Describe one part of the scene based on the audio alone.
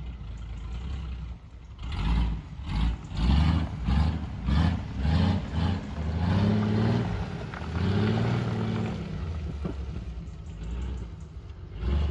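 An off-road vehicle's engine revs hard as it climbs a muddy track, rising and falling.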